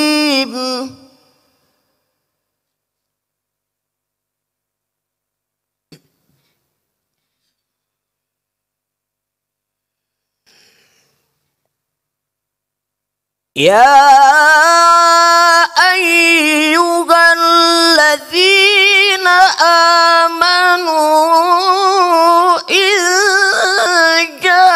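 A man chants melodically into a microphone, with long held notes.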